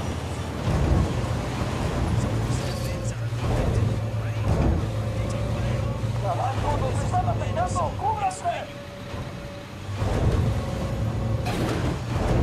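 A young man talks into a microphone.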